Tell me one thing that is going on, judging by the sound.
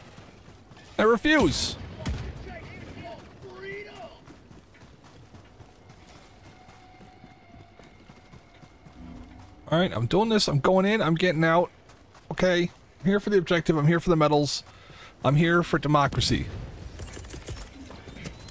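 Heavy boots crunch on rough ground at a run.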